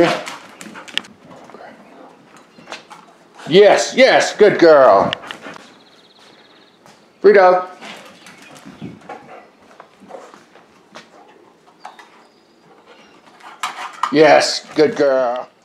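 A dog's claws click and patter on a wooden floor.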